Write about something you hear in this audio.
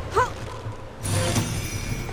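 A bright magical chime rings out.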